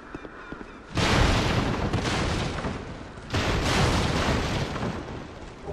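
Wooden crates and barrels smash and splinter loudly.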